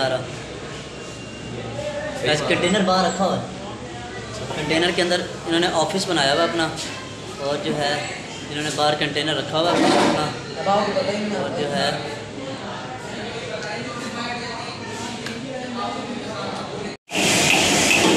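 A second young man talks nearby.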